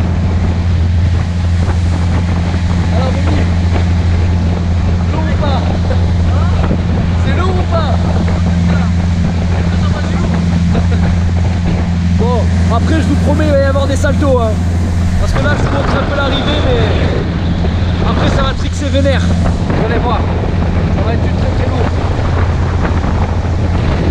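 Water rushes and churns behind a moving boat.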